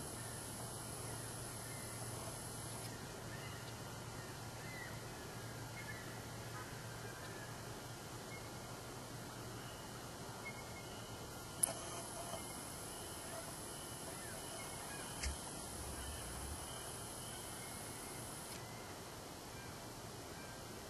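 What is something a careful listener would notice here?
A strutting wild turkey makes a low, deep drumming hum.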